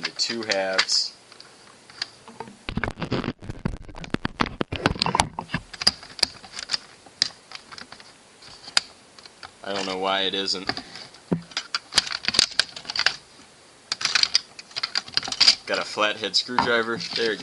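A hard plastic toy clicks and rattles as it is handled.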